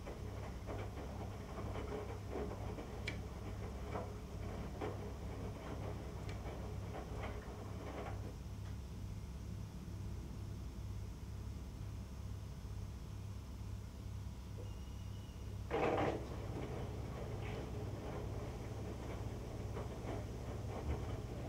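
A washing machine hums steadily with a low pulsing drone.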